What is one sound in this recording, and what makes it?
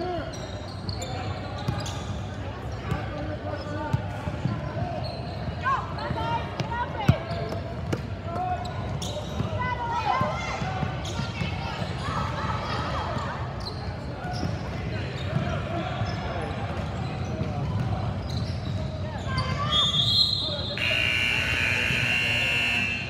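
Girls and women call out and chatter in a large echoing hall.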